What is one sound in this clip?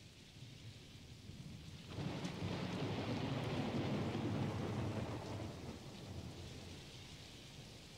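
Wind rushes past outdoors.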